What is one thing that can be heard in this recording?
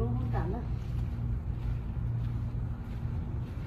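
Footsteps walk softly across a carpeted floor.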